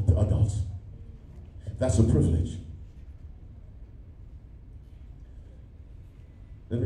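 A man speaks through a microphone over loudspeakers in a large echoing hall.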